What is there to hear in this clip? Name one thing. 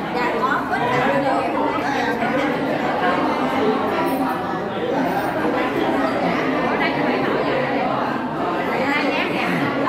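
A crowd of men and women chatter all around in an echoing hall.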